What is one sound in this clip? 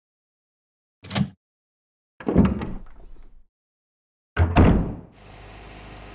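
A heavy door creaks open and bangs.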